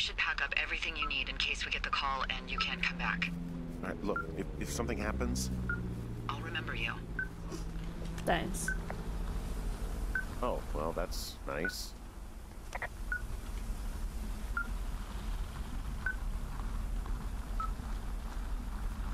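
An electronic receiver beeps at a steady, even pace.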